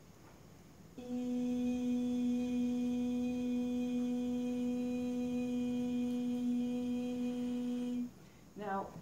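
A woman sings one long, steady note.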